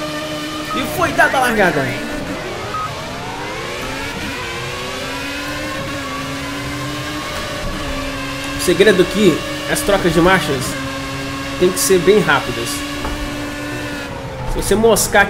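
Other racing cars whine past close by.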